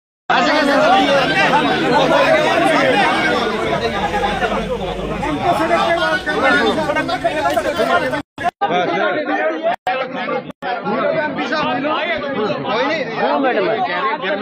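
A crowd of men talk over one another loudly, close by, outdoors.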